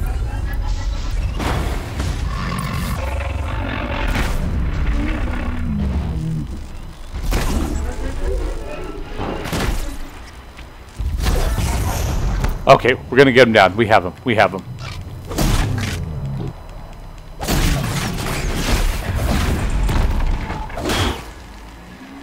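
Heavy metallic blows and crashes ring out during a fight.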